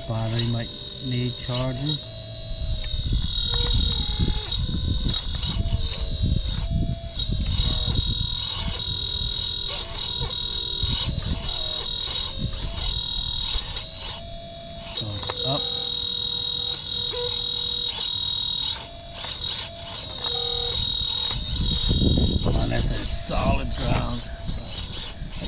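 A small electric motor whines steadily as a toy excavator moves its arm.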